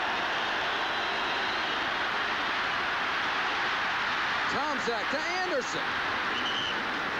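Football players collide and thud together in a tackle.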